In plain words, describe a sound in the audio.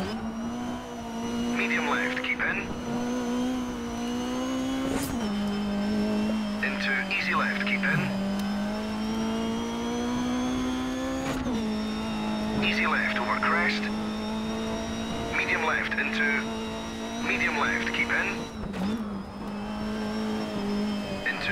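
A rally car engine drones loudly, its pitch stepping down at each gear change.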